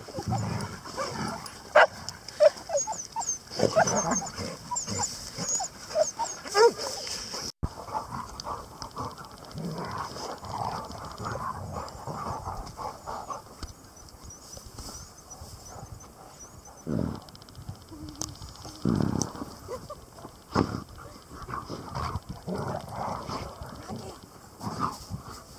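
Dogs dig and scrape in dry grass close by.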